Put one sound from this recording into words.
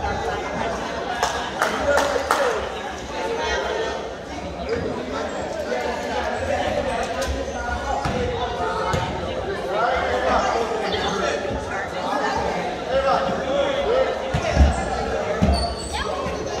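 A crowd of boys and adults chatters in a large echoing hall.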